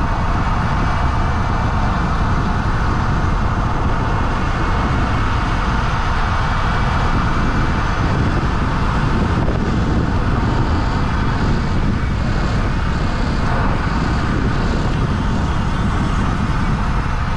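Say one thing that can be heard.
Wind rushes and buffets outdoors at speed.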